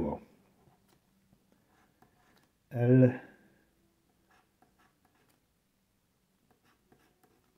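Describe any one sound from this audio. A tool scratches lightly across a card.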